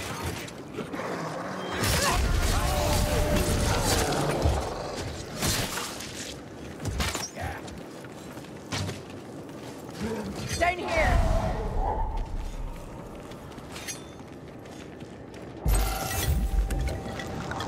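Weapons clash and thud in close combat.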